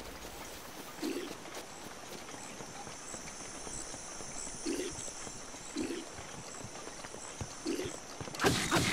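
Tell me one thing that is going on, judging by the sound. Soft thuds sound as a figure climbs a wooden structure.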